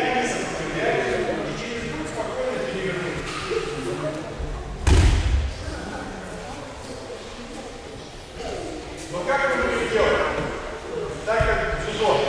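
Children chatter in a large echoing hall.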